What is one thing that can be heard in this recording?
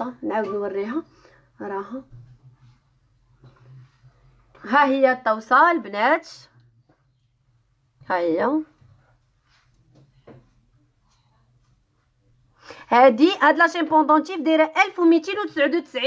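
A young woman speaks close by with animation, in short bursts.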